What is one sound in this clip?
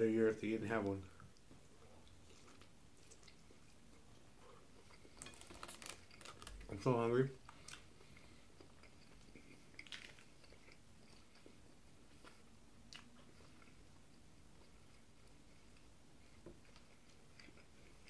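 A man chews food close to the microphone.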